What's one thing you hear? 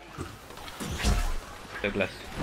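Cartoonish blaster shots pop in quick bursts.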